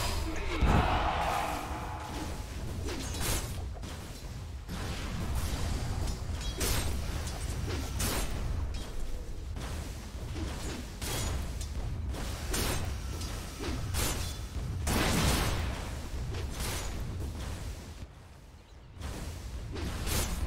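Magic spells and weapon blows crash and whoosh in a fast fight.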